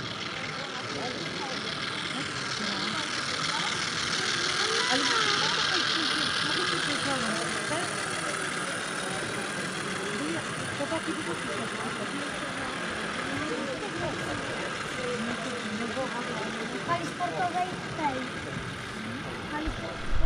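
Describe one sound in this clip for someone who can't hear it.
A model train rumbles and clatters along its track, growing louder as it passes.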